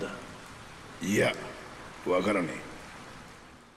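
A man speaks with a chuckle, close by.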